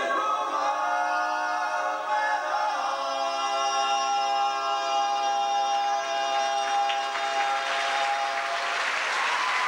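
Two singers hold a long, loud note together through a microphone in a large hall.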